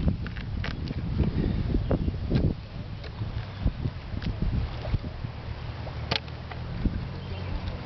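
A knife slices through raw fish on a wooden board.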